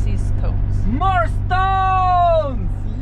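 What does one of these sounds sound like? A young man shouts out excitedly.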